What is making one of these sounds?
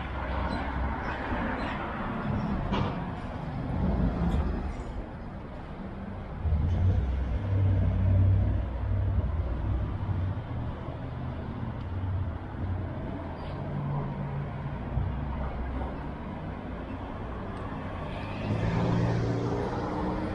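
Traffic hums steadily on a city street outdoors.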